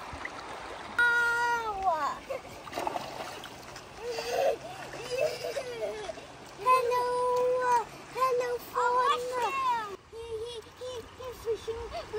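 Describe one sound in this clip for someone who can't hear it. A young boy talks and laughs with animation close by.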